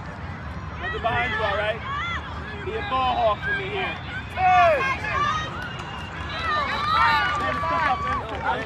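Spectators cheer and yell from the sidelines.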